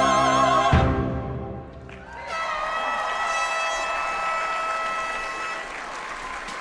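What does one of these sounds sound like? Trombones play a sustained chord with a brass band.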